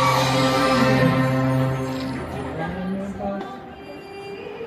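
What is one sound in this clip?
An orchestra plays a sustained chord that fades out in a large hall.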